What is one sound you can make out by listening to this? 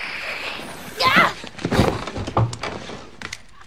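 A body thuds heavily onto the floor.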